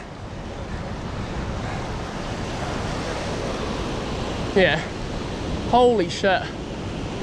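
Fast water rushes and churns loudly.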